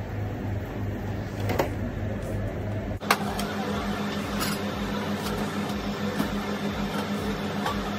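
Plastic packaging rustles as a man handles it.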